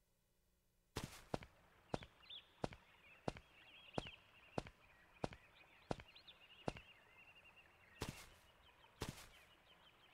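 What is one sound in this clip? Footsteps tap steadily on stone paving.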